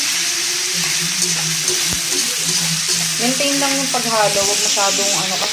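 Food sizzles in hot oil in a frying pan.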